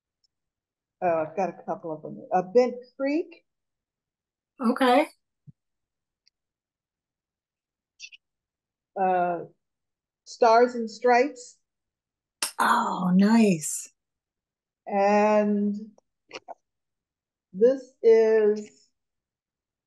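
An older woman talks with animation over an online call.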